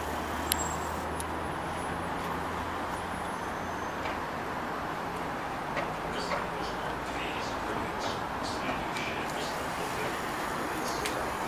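A trolleybus hums and rumbles steadily as it drives.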